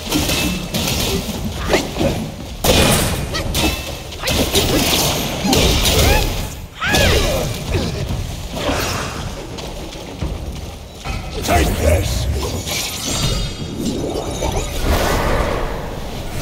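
Water splashes as fighters leap and land in it.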